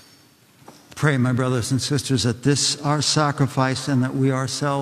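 A man chants in a steady voice, echoing in a large hall.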